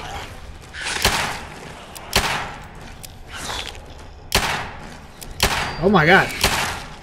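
A pistol fires several sharp, loud shots.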